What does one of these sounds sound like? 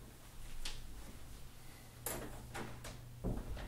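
A door swings shut with a click of the latch.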